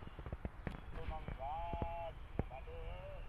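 A second man speaks close by in a higher, sing-song voice.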